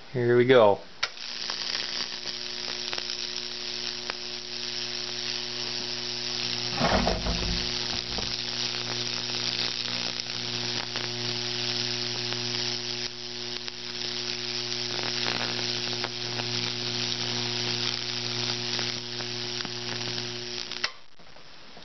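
Electric arcs crackle and sizzle across burning wood.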